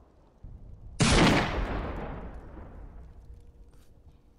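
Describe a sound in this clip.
A loud blast bangs and rings out, slowly fading.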